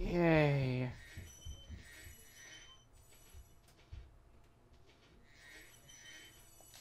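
Bright chiming twinkles ring out.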